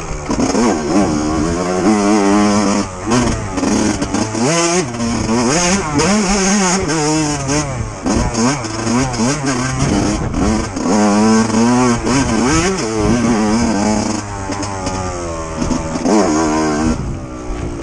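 Tyres crunch over dry leaves and dirt.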